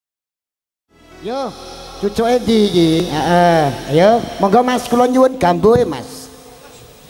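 An elderly man sings loudly into a microphone through a loudspeaker.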